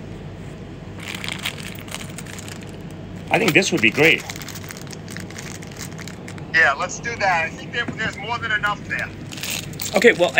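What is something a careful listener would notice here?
Plastic bags crinkle and rustle as hands handle them.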